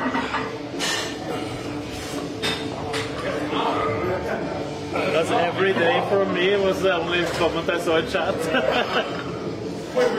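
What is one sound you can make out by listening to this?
Weight plates clank on a machine.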